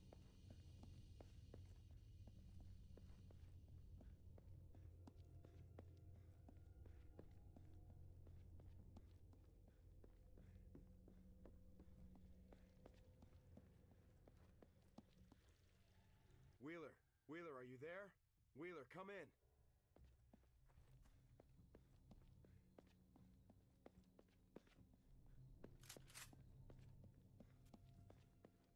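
Footsteps run quickly and steadily on hard ground.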